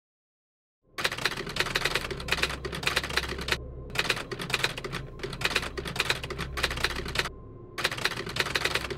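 A film projector whirs and clatters steadily.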